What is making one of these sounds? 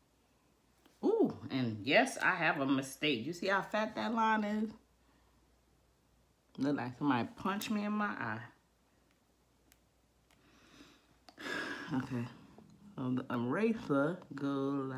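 A woman talks calmly and close up, with pauses.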